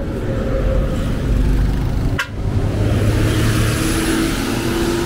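Traffic rumbles steadily along a road outdoors.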